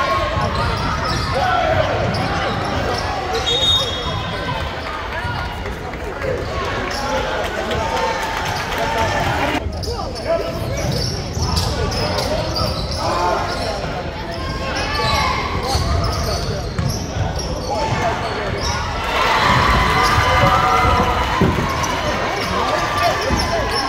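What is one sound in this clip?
A crowd of spectators chatters and cheers throughout a large echoing gym.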